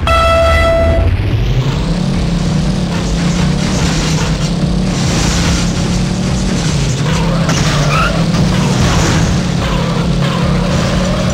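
A car engine revs up and roars at speed.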